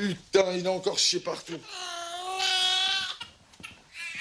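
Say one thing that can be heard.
A baby cries.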